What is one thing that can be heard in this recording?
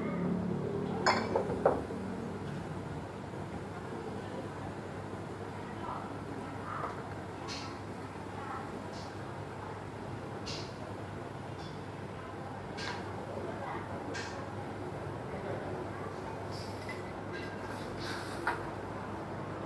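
Metal utensils clink against a wok.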